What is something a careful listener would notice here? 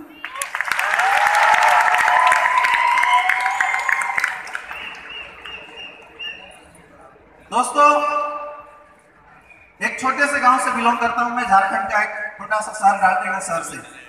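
A man sings into a microphone, heard through loudspeakers in a large echoing hall.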